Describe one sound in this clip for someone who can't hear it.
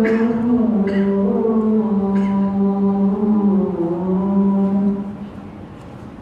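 A man recites in a slow, drawn-out chant through a microphone.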